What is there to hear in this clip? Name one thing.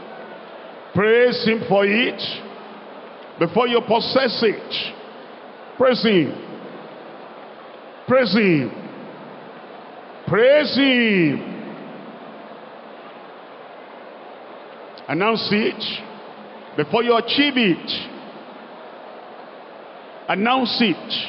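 A man shouts prayers loudly in short, rising and falling bursts.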